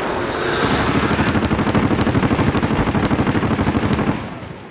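Footsteps crunch quickly over dry grass.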